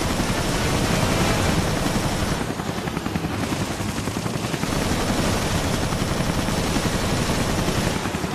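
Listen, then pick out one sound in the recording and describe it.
Explosions boom close by.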